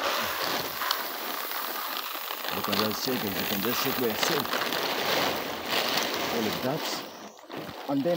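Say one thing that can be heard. A plastic sack rustles and crinkles as it is handled.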